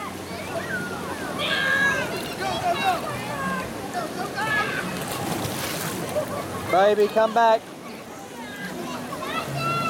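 A crowd of children and adults chatter and call out nearby, outdoors.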